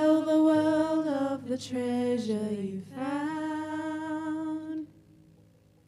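A keyboard plays along with the singing.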